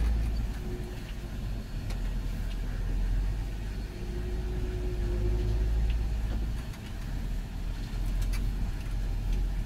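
A tractor engine rumbles steadily from inside the cab.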